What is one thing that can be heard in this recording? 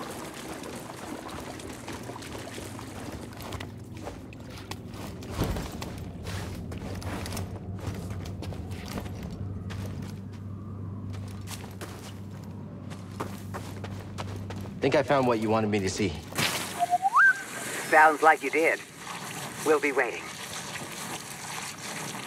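Footsteps run over stone and grass.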